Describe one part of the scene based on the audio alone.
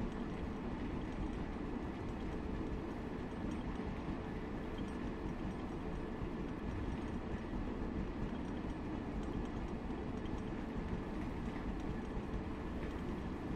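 Freight wagons rattle and clatter over the rails.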